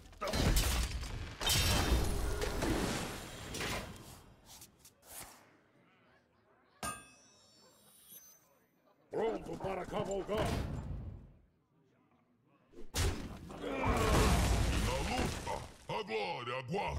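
Magical chimes and whooshes from a card game ring out in bursts.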